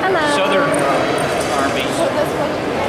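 A woman speaks cheerfully close by.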